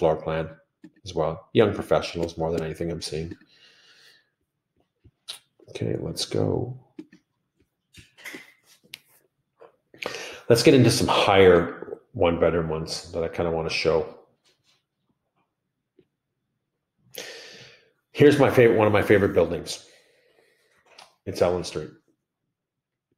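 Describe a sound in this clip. A middle-aged man talks calmly and casually into a close microphone, in short bursts with pauses.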